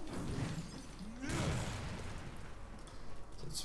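A heavy blow slams into the ground with a rumbling crash.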